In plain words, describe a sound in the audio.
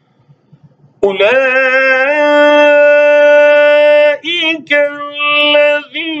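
A middle-aged man chants in a long, melodic, drawn-out voice close to a microphone.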